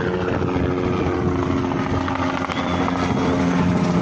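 A helicopter flies overhead with thudding rotor blades.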